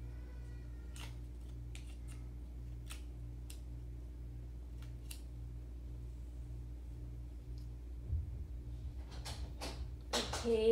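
Small plastic parts click and tap as they are handled.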